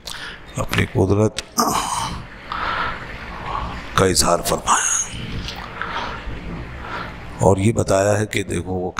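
A middle-aged man speaks steadily into a headset microphone, close by.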